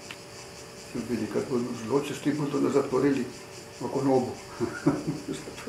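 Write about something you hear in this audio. An elderly man speaks calmly and close up.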